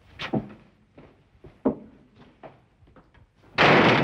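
A wooden door swings shut with a thud.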